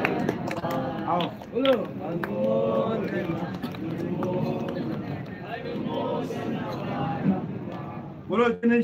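Men and women talk over one another close by, in a lively murmur.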